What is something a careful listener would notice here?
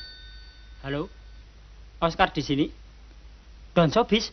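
A young man speaks into a telephone.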